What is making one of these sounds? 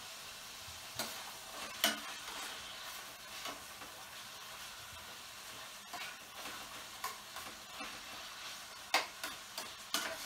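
A metal utensil clinks and scrapes against a pan now and then.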